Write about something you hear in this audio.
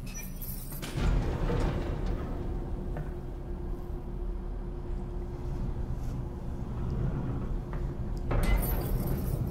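An elevator hums steadily as it travels.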